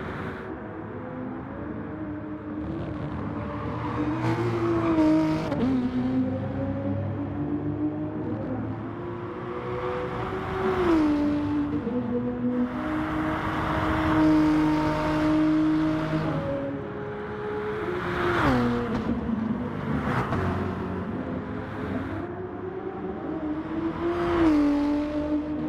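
A racing car engine roars at high revs, climbing in pitch and dropping sharply at each gear change.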